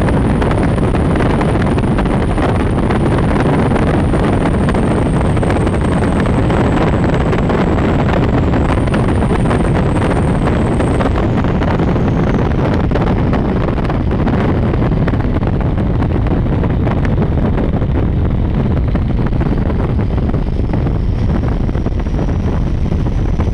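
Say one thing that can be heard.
Strong wind buffets loudly, outdoors at speed.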